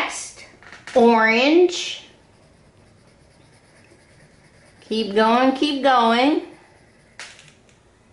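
A crayon scratches softly on paper.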